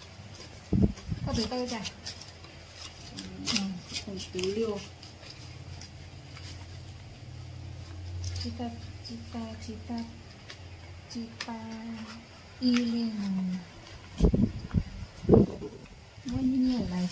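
Paper banknotes rustle and crinkle as they are handled.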